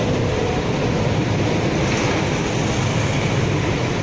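A large truck rumbles past close by.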